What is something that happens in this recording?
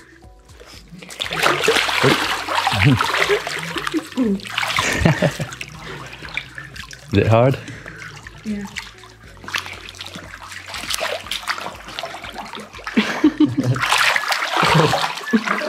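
Water splashes and sloshes around a swimmer.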